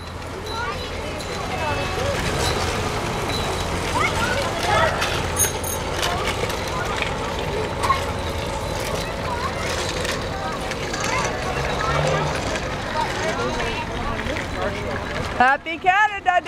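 Children chatter and call out to each other outdoors.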